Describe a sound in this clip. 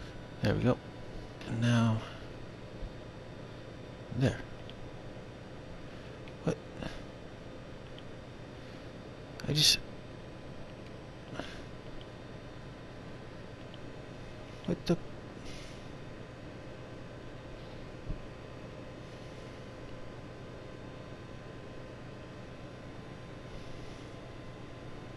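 An electronic device hums with a steady tone.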